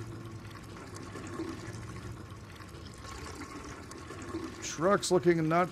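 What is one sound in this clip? Fuel pours steadily from a pump nozzle into a car's tank.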